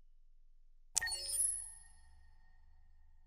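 A menu chime sounds sharply and rings out briefly.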